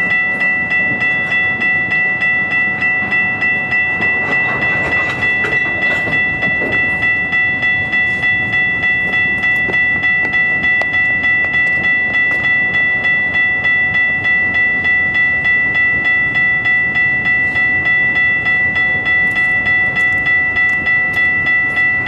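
A railway crossing bell rings steadily and rapidly.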